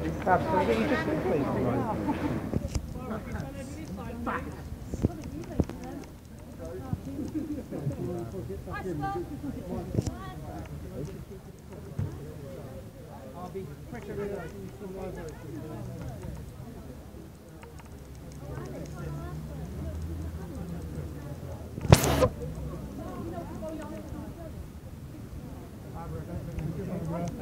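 An elderly woman speaks softly up close.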